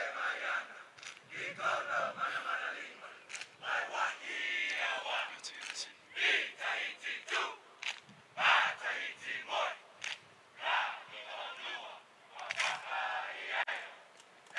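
A large crowd of men chants and shouts in unison outdoors.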